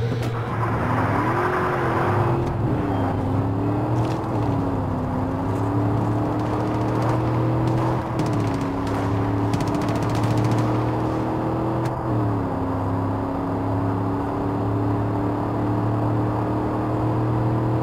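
A car engine hums steadily and shifts pitch as the car changes gear.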